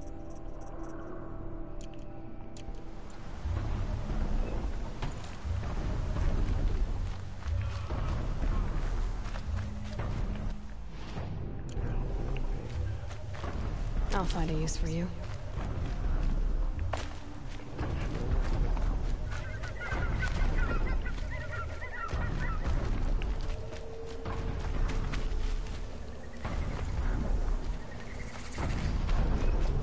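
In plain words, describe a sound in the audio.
Footsteps rustle quickly through tall grass and leaves.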